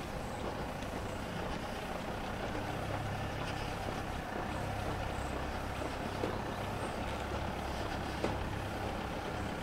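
A car engine hums low as a car approaches slowly along the street.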